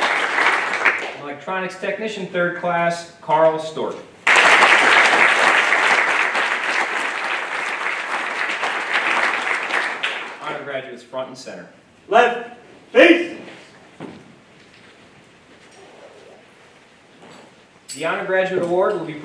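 A man speaks calmly into a microphone, heard through loudspeakers in a room.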